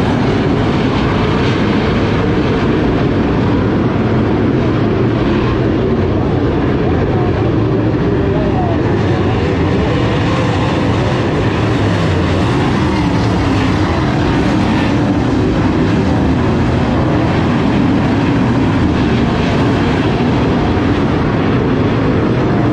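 Race car engines roar loudly around a dirt track outdoors.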